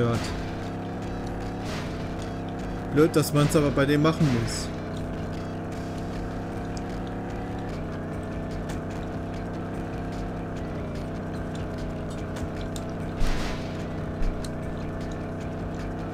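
A game car's engine drones steadily, rising and falling in pitch with speed.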